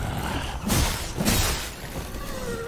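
A torch flares up with a short whoosh.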